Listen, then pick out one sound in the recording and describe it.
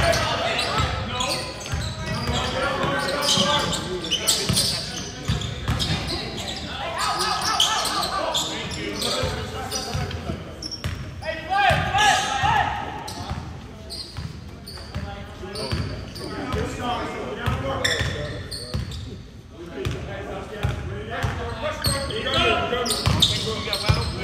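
Sneakers squeak on the hardwood floor.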